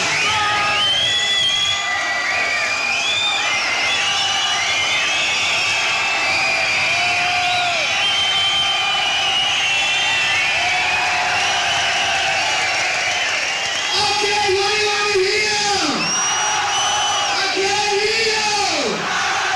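A rock band plays loudly live.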